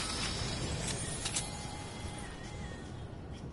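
A chiming tone rings as an item is picked up.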